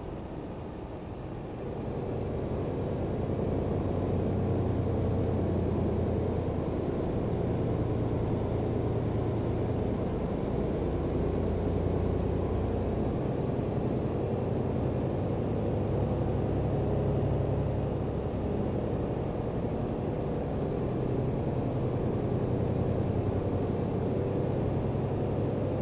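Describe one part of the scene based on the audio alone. A heavy truck engine drones steadily.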